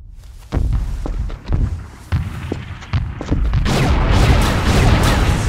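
Heavy gunshots fire in loud bursts.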